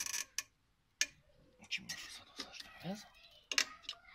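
A screwdriver scrapes and clinks against metal.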